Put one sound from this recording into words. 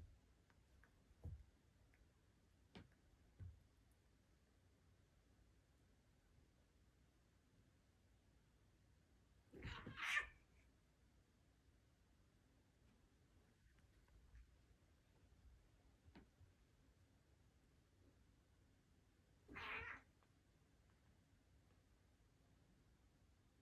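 Two cats scuffle and thump softly on a carpet.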